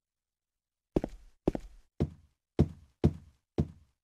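Slow, heavy footsteps thud on a hard floor.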